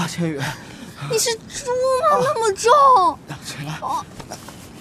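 A young woman groans and complains loudly, close by.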